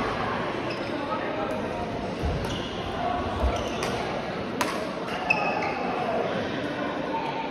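Shoes squeak on the floor.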